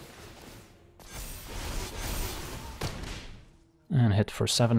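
A magical whoosh swells and fades.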